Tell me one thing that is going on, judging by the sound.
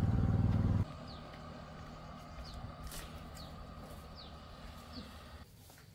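Footsteps scuff along a paved path.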